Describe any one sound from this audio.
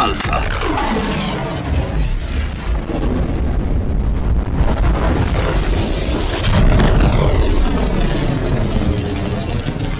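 Electric bolts crackle and sizzle sharply.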